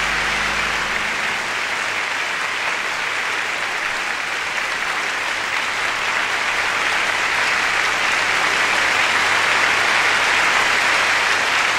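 A large audience applauds and cheers in a big echoing hall.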